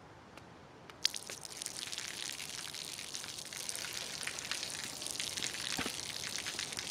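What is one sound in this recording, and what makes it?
Water splashes steadily onto a wet pavement.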